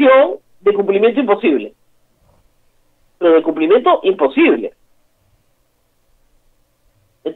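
A middle-aged woman speaks with animation over an online call, in bursts with pauses.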